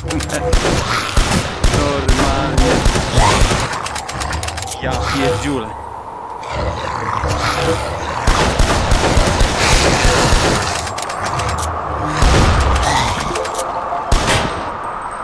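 Shotgun blasts boom in a video game.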